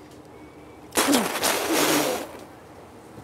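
A woman spits forcefully.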